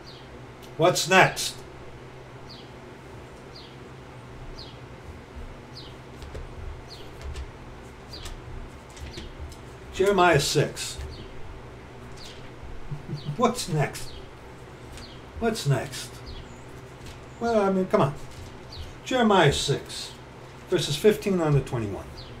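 A middle-aged man speaks calmly and close up in short bursts.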